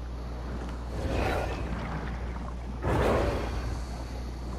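A shark bites down with a heavy, splashing crunch.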